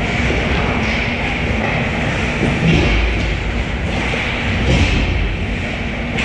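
Hockey sticks clack against the puck near the goal.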